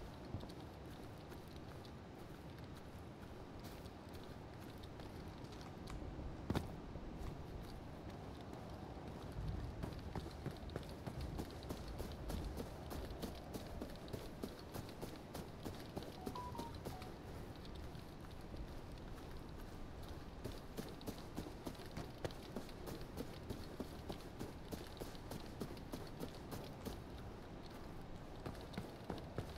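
Footsteps crunch steadily over grass and gravel.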